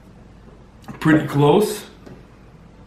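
A mug is set down on a wooden table with a knock.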